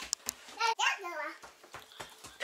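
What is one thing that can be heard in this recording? A small child babbles in a high voice.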